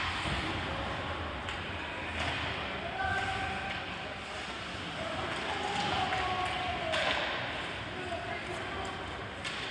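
Skates scrape and swish across the ice in a large echoing rink.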